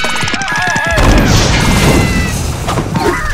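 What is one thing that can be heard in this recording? A fiery explosion roars.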